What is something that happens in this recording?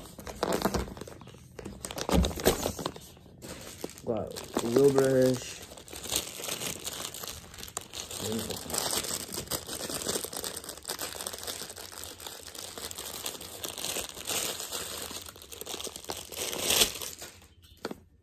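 Plastic packaging rustles and crinkles close by.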